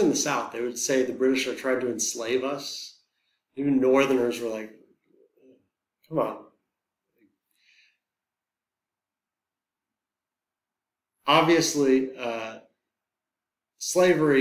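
A man lectures calmly into a close microphone, with pauses.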